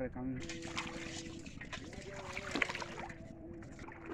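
Water splashes as a man wades through it.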